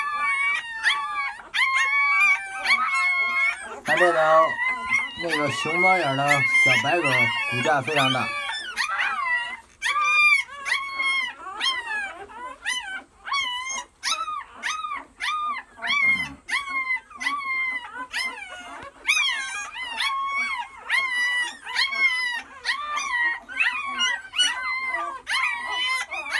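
Newborn puppies whimper and squeal in high, thin cries.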